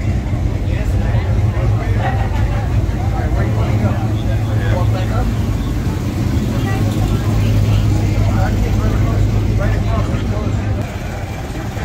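A muscle car's engine rumbles deeply as it rolls slowly past.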